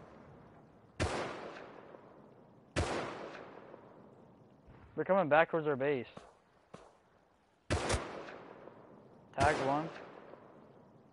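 A rifle fires single loud shots that echo and fade outdoors.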